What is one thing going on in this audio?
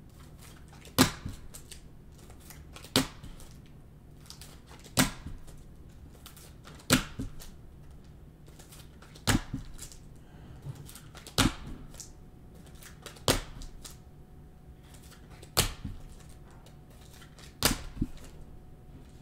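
Trading cards are flipped and slapped against each other in the hands, one after another.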